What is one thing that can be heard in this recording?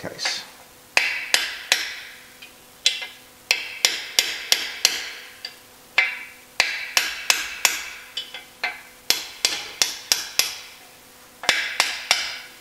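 A hammer strikes a metal punch with sharp, ringing taps.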